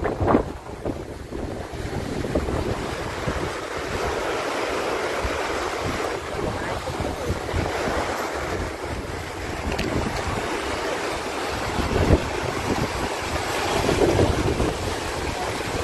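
Muddy floodwater rushes and churns loudly outdoors.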